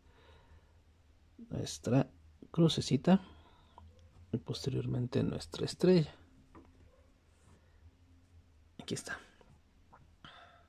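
A soft cord rustles and slides as hands knot it.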